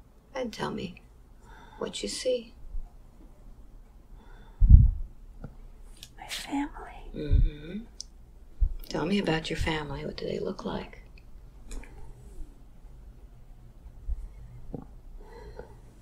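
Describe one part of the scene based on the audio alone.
An older woman speaks weakly and haltingly close by.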